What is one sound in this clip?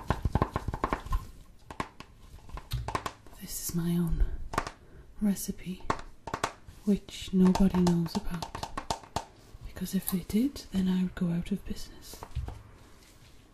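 A plastic jar lid taps and scratches close by.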